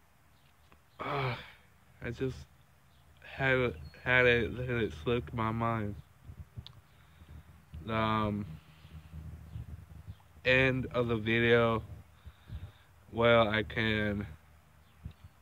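A young man talks casually and close up, in short bursts with pauses.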